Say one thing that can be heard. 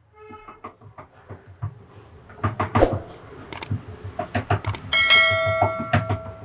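A fork taps and pricks soft dough on a wooden board.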